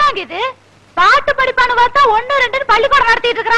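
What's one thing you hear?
A woman talks with animation, close by.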